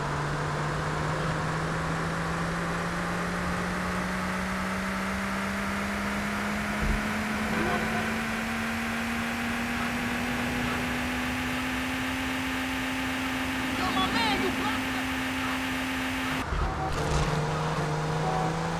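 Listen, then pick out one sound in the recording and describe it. A sports car engine hums steadily and slowly rises in pitch as the car speeds along.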